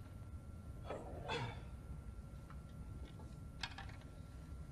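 A snooker cue knocks softly against the table.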